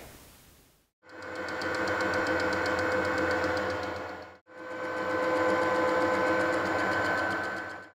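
A metal lathe runs unloaded with a steady whine.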